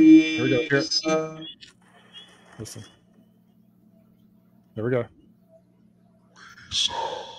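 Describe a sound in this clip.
A middle-aged man talks casually over an online call, with short pauses.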